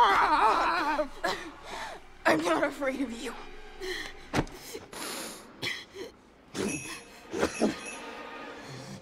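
A young boy chokes and gasps for breath.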